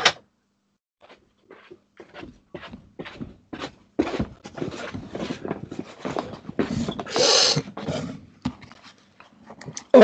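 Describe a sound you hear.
Objects knock and rustle close to the microphone.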